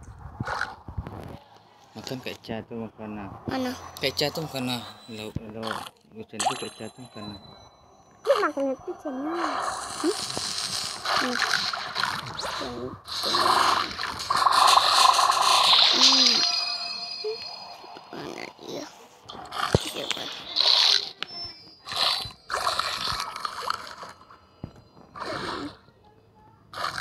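Cartoonish biting and crunching effects sound in quick bursts.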